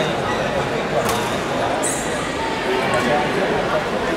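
A table tennis ball clicks sharply off paddles and the table.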